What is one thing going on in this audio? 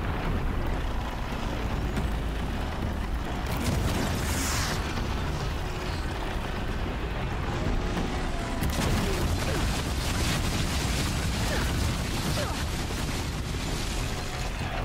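A dust storm wind roars steadily.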